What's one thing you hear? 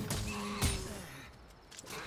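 A blade slashes and strikes an animal.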